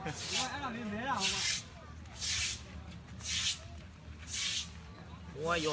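A broom sweeps water across a wet concrete court.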